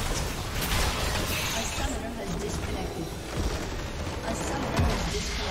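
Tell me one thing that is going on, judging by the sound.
Game spell effects crackle and blast during a fight.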